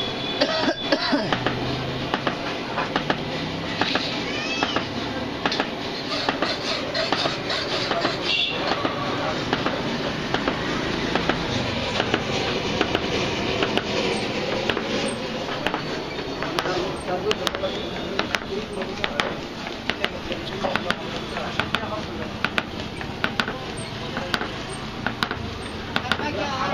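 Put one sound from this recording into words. A crowd of men chatter and talk loudly outdoors nearby.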